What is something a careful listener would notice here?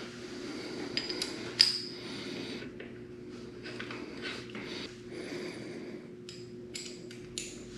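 A metal hex key clicks and scrapes against a bolt.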